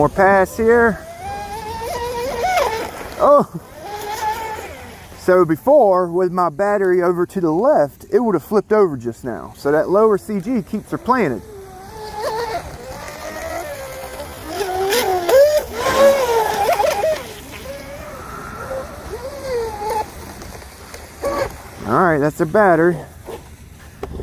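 A small electric motor boat whines loudly, revving up and down as it speeds across water.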